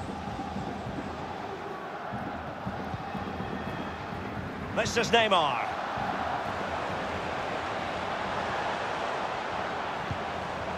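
A stadium crowd murmurs and cheers steadily.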